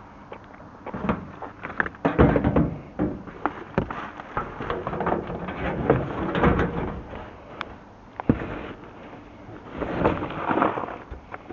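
Rubbish rustles and clatters inside a plastic bin.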